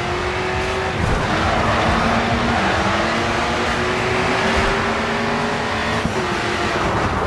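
A race car engine roars at high revs, shifting gears as it speeds up.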